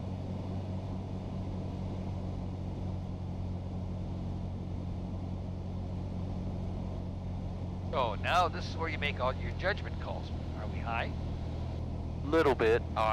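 A small plane's engine drones steadily inside the cabin.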